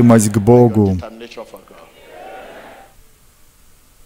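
A crowd sings loudly in a large echoing hall.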